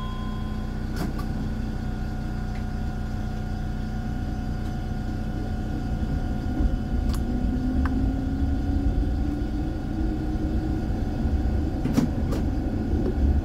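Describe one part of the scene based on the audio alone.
Tram wheels click over rail joints.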